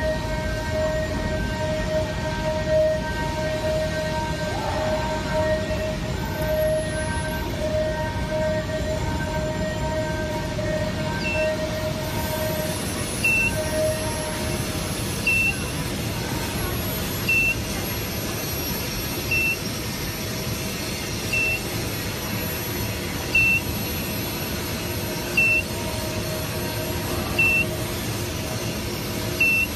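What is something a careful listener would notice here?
A machine hums with a steady high whine.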